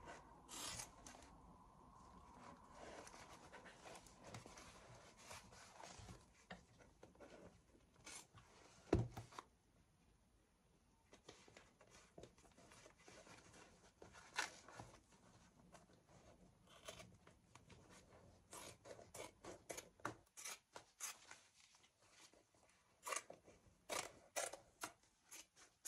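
Leather rustles and creaks as it is handled.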